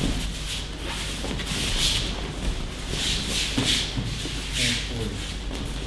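Bare feet shuffle and slide across mats.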